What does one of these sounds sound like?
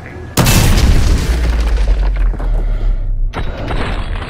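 An explosion bursts with flying debris.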